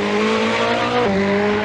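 A gear shift snaps through the engine roar.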